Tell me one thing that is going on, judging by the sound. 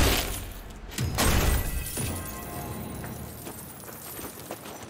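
Coins burst out with a bright jingling shower.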